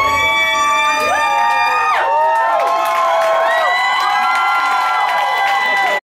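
Live music with long, sliding held notes plays loudly over loudspeakers.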